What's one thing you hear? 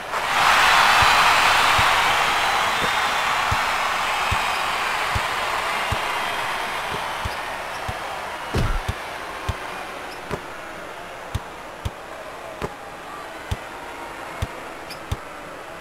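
A basketball bounces on a wooden court in a steady rhythm.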